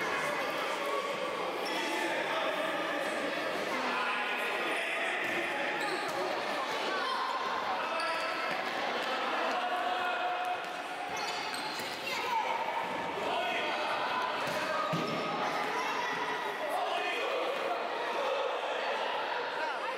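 Children shout and call out in an echoing indoor hall.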